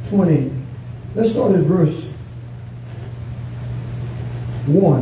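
A man speaks slowly through a microphone and loudspeakers in an echoing room.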